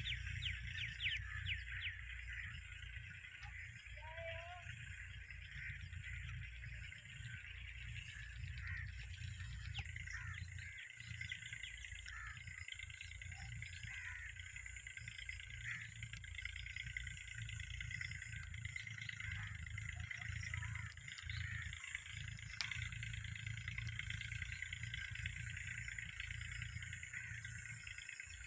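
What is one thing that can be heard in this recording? A parrot chirps and squawks close by.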